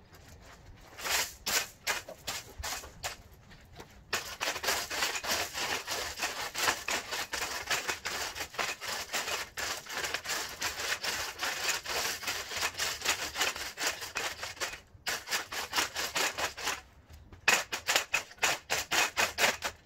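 A long-handled tool scrapes through gravel.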